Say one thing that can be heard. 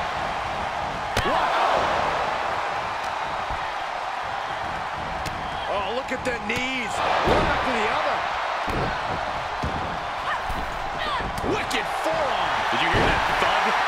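Heavy thuds land on a wrestling ring mat.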